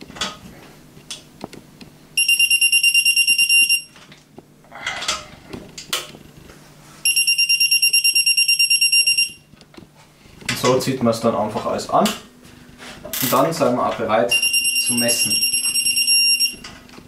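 A ratchet clicks as a bolt is turned.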